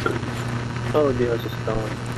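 A young man speaks briefly into a headset microphone, close by.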